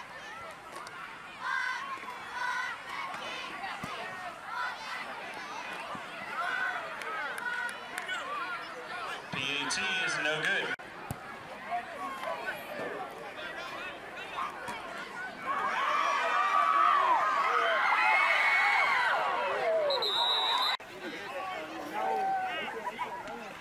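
A crowd of spectators chatters and calls out in open air.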